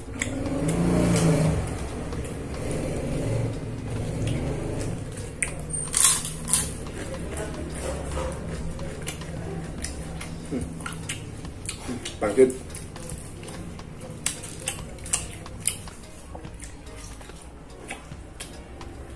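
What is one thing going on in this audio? Fingers rustle and squish through food on paper.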